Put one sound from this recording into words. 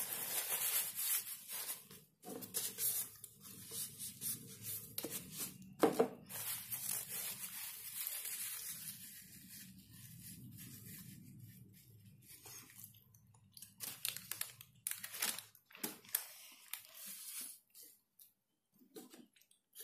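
Paper crinkles and rustles as hands unwrap food.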